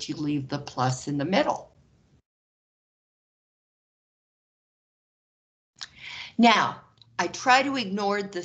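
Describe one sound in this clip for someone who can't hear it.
A man explains calmly through a microphone, pausing between phrases.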